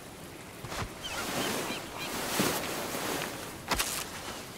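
Clothing rustles and scrapes as a body is dragged across the ground.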